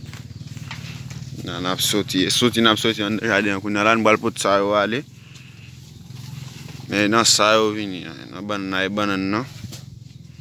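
Leaves rustle as they brush past.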